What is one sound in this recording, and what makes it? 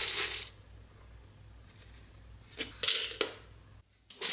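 Small metal parts clink as they drop onto plastic pellets.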